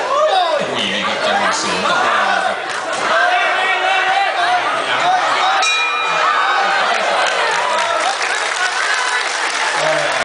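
A large crowd shouts and cheers loudly outdoors.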